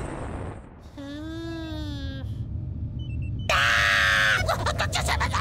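A cartoon creature squeals in a high, sing-song voice.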